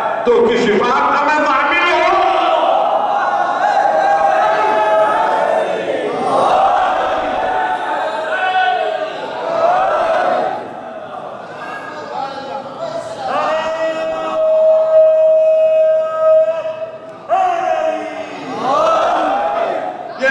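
An elderly man speaks with animation into a microphone, heard through a loudspeaker.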